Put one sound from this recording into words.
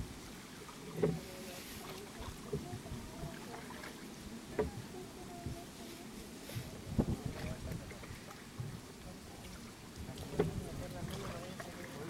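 Water laps gently against a boat's hull.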